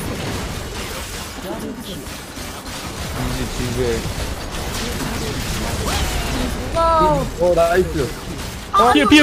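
Game spell effects and blows clash in a busy battle.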